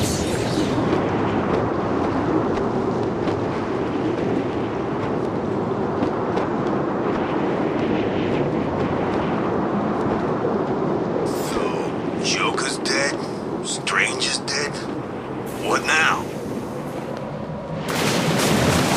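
Wind rushes loudly and steadily past.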